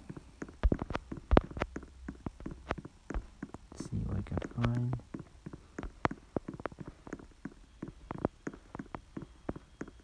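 Footsteps tap quickly and steadily as a game character runs.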